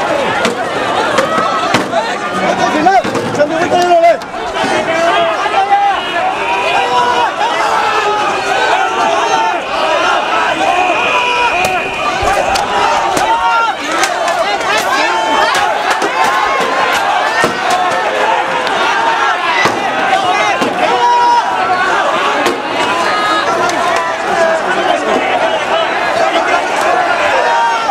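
A crowd of people shouts and chants loudly outdoors.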